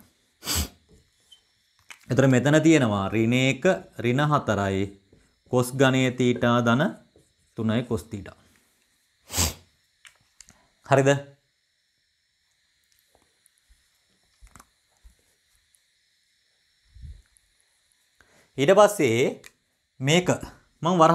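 A young man speaks calmly and clearly, close by, in short bursts with pauses.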